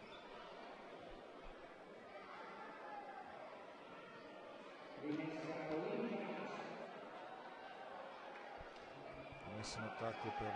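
Spectators and players murmur and call out in a large echoing hall.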